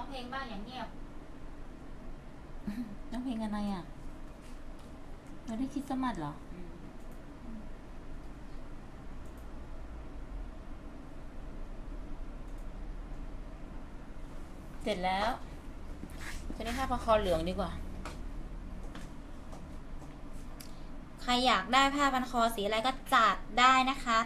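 A young woman speaks nearby in a lively voice.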